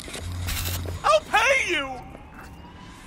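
A man pleads loudly and desperately, close by.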